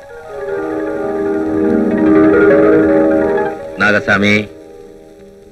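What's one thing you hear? A man speaks loudly with animation, close by.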